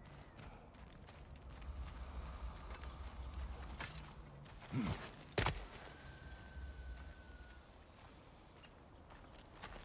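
Heavy footsteps crunch on dirt and stone.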